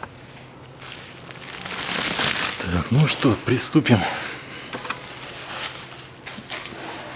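Plastic bubble wrap rustles and crinkles.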